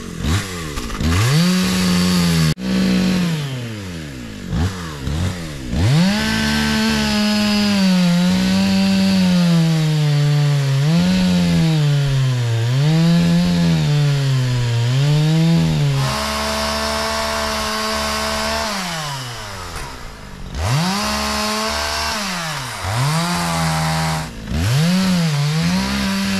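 A chainsaw revs up and down while cutting through a log.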